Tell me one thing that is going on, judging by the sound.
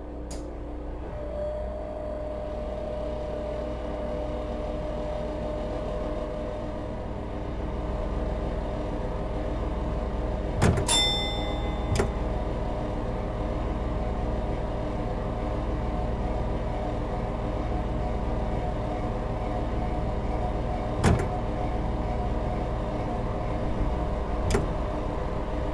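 A train's electric motors hum steadily as it slowly speeds up.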